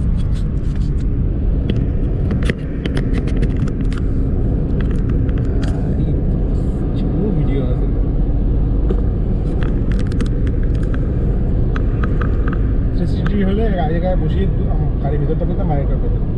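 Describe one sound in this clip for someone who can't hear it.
Rain patters on a car windscreen.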